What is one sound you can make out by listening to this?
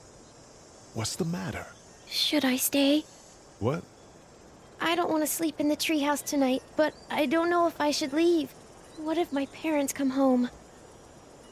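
A young girl speaks softly and anxiously.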